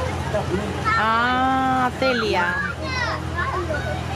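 A young girl calls out in a high, drawn-out voice close by.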